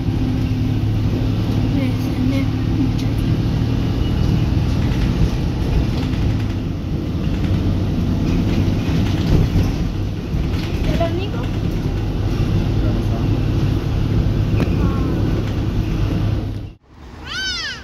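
A vehicle's engine rumbles steadily from inside as it drives along a road.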